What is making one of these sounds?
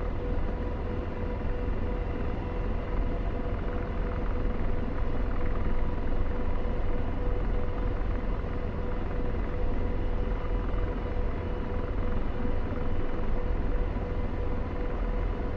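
A helicopter's engine and rotor drone steadily with a loud, low rumble.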